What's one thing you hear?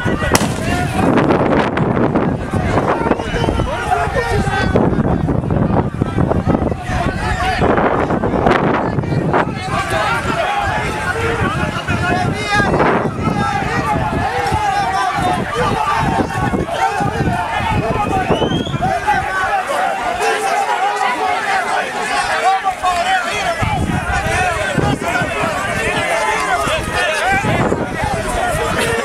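A crowd of men shout and clamour outdoors.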